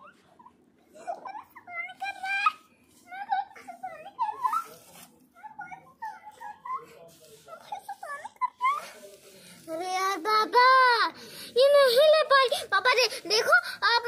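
A small child babbles and squeals loudly up close.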